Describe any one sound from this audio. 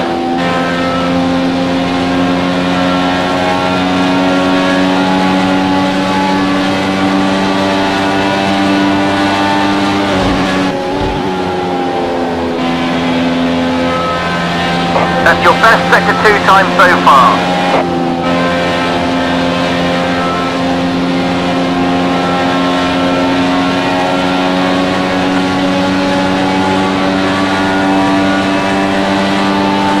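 A racing car engine drones at high speed, steady and loud.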